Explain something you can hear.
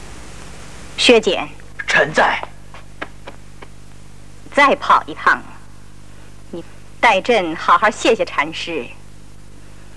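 An older woman speaks calmly and firmly, close by.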